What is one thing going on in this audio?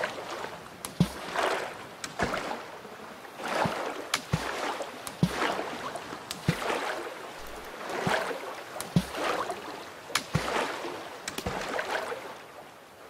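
A blade chops into wood with repeated sharp knocks.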